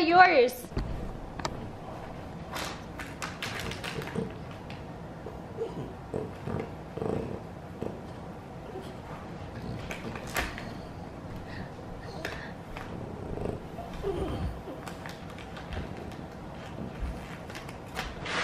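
A crinkly toy rustles as a small dog chews it.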